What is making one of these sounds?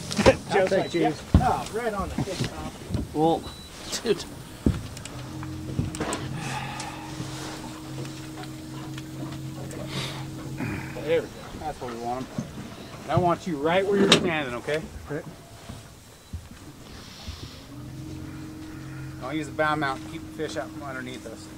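A man talks with excitement close by.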